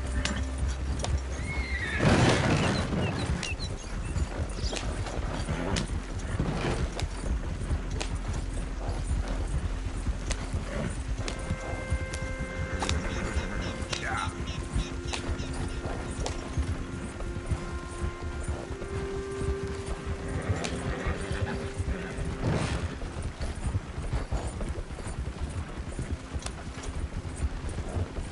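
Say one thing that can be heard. A horse-drawn wagon rattles and creaks along a dirt track.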